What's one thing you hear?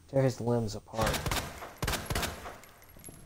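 A gun fires loudly a few times.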